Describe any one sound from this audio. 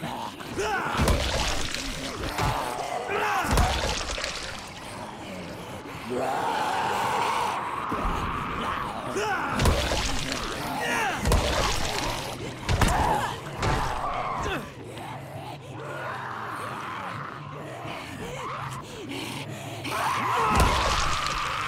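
A blade strikes flesh with wet, heavy thuds.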